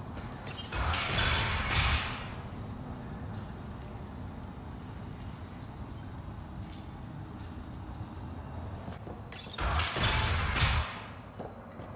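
A heavy metal door slides open with a loud whoosh and hiss.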